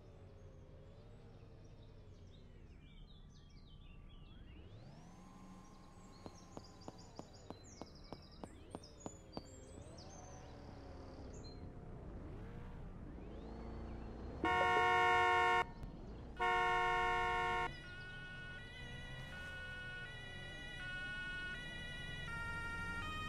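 A car engine hums as a car drives slowly.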